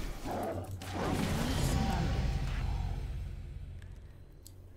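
A bright magical chime rings out and swells, then fades.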